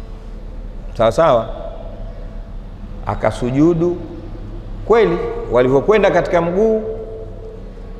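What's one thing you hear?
A man speaks with animation into a microphone, in a reverberant room.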